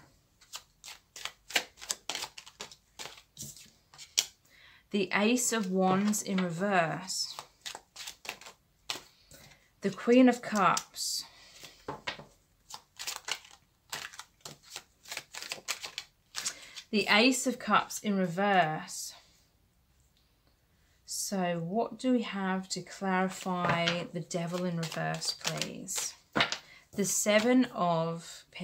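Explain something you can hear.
Playing cards riffle and flick as a deck is shuffled.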